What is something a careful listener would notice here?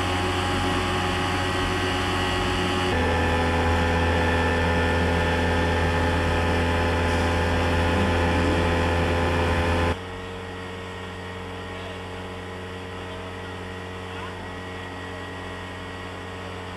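A scooter engine runs with a steady hum, louder for a while and then quieter.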